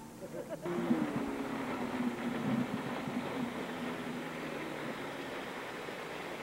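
Water splashes and hisses against the boat's hull.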